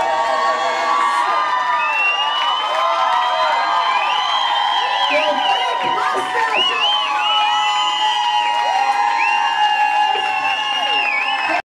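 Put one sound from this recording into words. A crowd of young adults whoops and cheers loudly.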